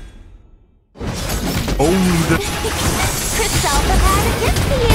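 Magical blasts whoosh and crackle in a fast game battle.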